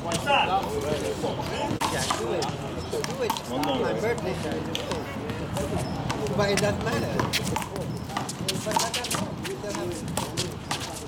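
A ball smacks sharply against a wall.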